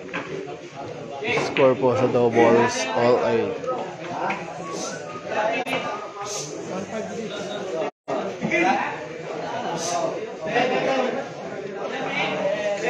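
Several men talk and chatter nearby in a room.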